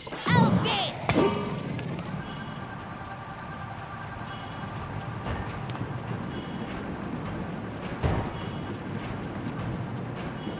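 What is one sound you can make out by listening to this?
A small cart rumbles and rattles steadily along a metal rail.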